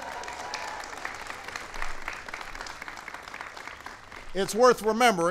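A large crowd applauds outdoors.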